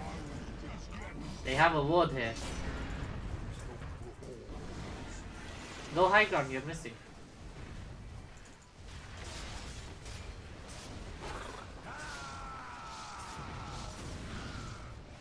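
Magic spells and weapons clash in a fantasy battle.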